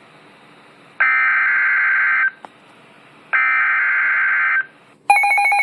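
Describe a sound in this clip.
A radio sounds two longer warning tones.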